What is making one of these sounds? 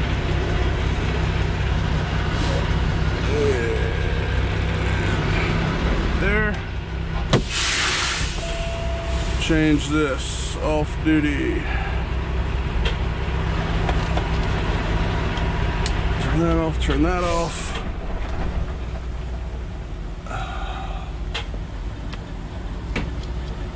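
A truck engine rumbles steadily at low pitch.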